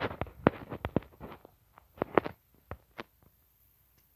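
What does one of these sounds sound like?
A game character's footsteps patter quickly.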